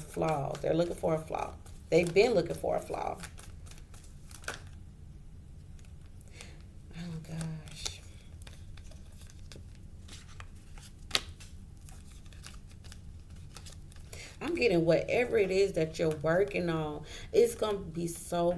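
Playing cards riffle and slap softly as they are shuffled.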